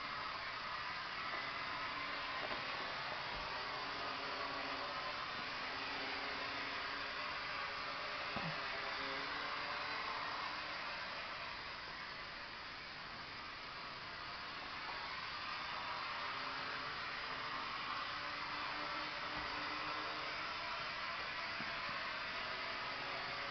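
A small drone's rotors whine steadily overhead, fading briefly as the drone moves away.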